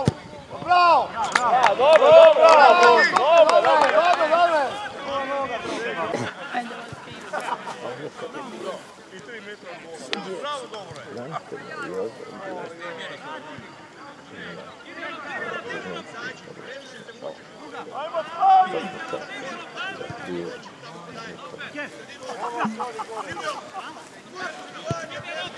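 Young men shout loudly to each other outdoors in the open.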